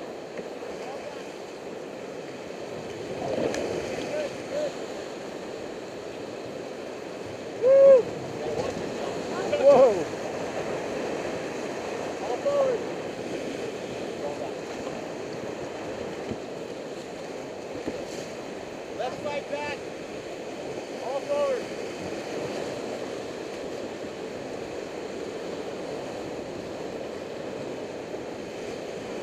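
River rapids rush and roar close by.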